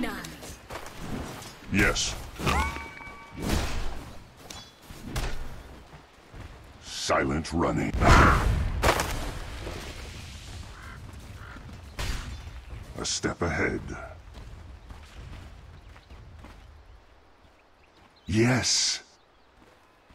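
Game spell effects burst and crackle in short bursts.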